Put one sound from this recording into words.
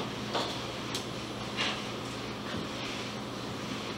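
A woman wipes a chalkboard with an eraser.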